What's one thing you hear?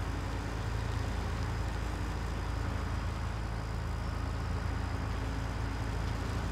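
A heavy diesel engine rumbles steadily at idle.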